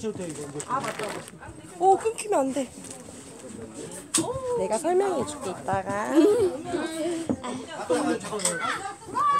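Young women talk and laugh excitedly close to a phone's microphone.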